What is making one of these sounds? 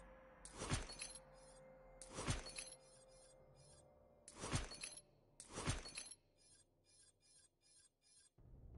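Menu selection sounds chime and swish repeatedly.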